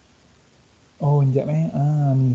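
A man speaks calmly, heard through an online call.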